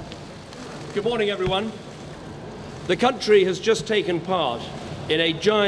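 A middle-aged man speaks calmly and formally into a microphone outdoors.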